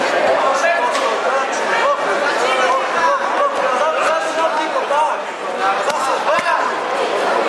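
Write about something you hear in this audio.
Gloved punches and kicks thud against padding.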